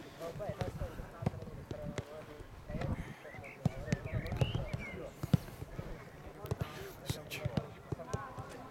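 Footballs thud as players kick them across a field outdoors.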